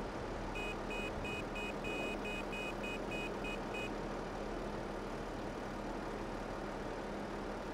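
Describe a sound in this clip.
A heavy loader's diesel engine idles with a steady low rumble.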